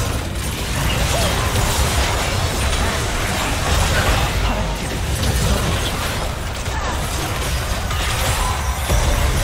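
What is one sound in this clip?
Game spell effects crackle and whoosh during a battle.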